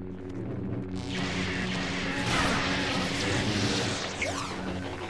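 Electric lightning crackles and buzzes.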